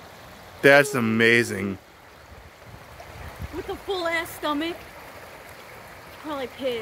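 Shallow water trickles and ripples over stones.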